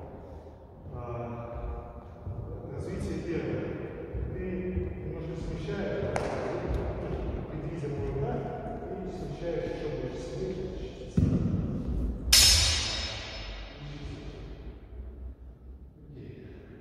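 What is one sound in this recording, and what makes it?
A man talks calmly nearby in an echoing hall.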